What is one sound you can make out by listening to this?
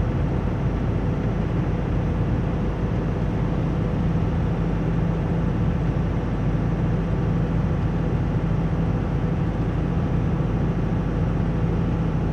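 A vehicle engine drones steadily from inside the cab.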